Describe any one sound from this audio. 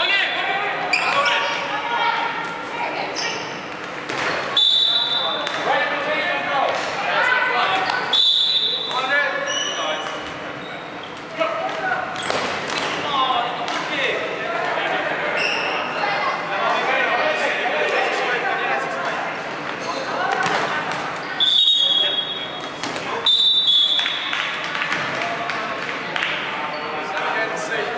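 Many young women shout and call out across a large echoing hall.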